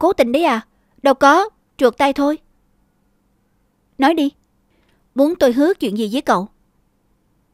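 A young man answers playfully and close by.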